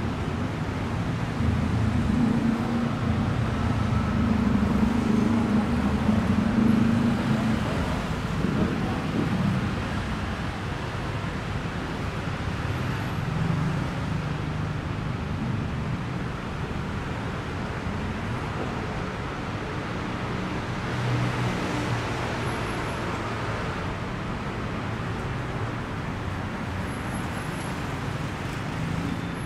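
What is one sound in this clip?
City traffic rumbles steadily along a nearby street.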